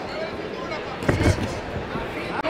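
A boxing glove thuds against a body.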